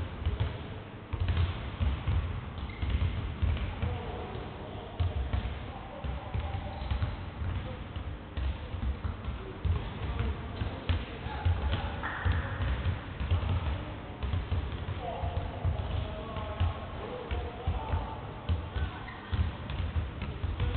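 A basketball bounces repeatedly on a wooden floor in a large echoing hall.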